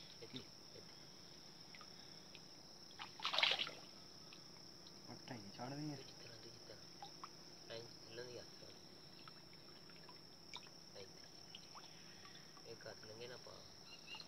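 Water splashes and sloshes as a man moves a net through it.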